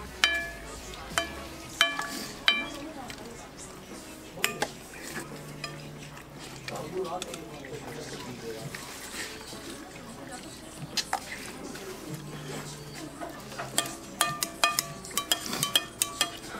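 Spoons clink sharply against glass bowls.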